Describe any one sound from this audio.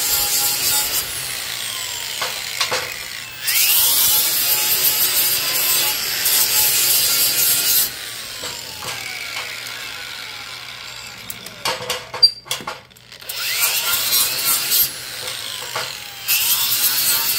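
An angle grinder motor whirs and winds down between cuts.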